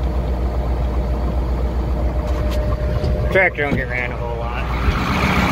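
A tractor engine rumbles steadily at idle, heard from inside the cab.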